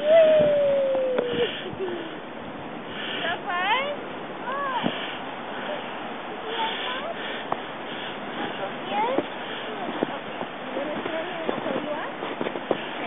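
A young child squeals and calls out nearby, outdoors.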